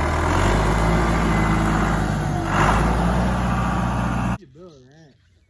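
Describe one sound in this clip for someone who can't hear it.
A tractor engine rumbles loudly nearby.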